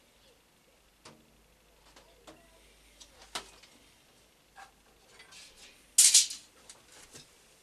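Metal tools clink and knock against a machine table.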